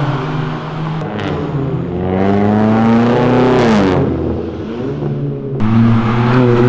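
Exhaust pops and crackles sharply.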